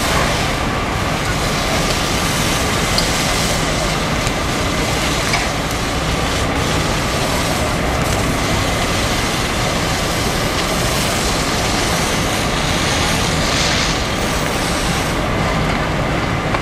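Water jets from fire hoses hiss and spray steadily.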